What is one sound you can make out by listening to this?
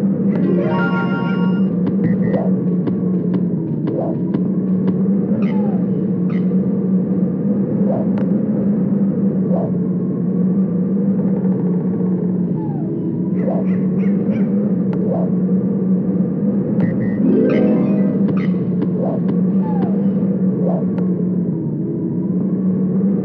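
Game music plays steadily throughout.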